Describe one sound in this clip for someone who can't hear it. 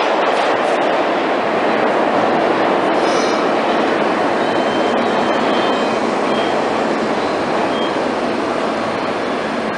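A subway train rumbles loudly into an echoing underground station.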